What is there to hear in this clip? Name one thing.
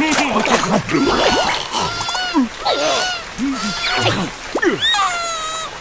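Small cartoon creatures chatter and squeal in high, squeaky voices.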